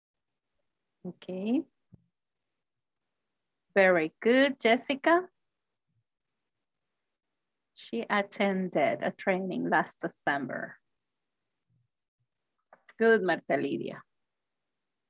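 A woman speaks in short phrases over an online call.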